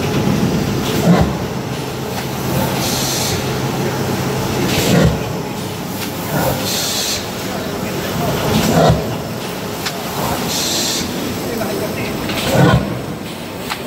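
A machine thumps heavily at regular intervals.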